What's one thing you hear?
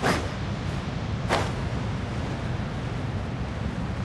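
Wind rushes steadily past while gliding through the air.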